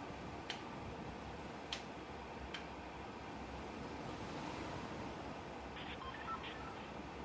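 Wind rushes steadily past a descending glider.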